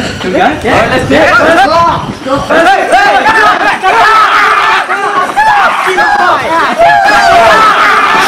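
A group of young men shout and whoop loudly together.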